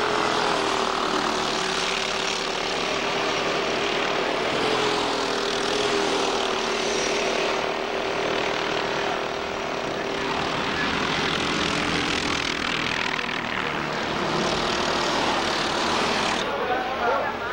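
Go-kart engines buzz and whine as the karts race past.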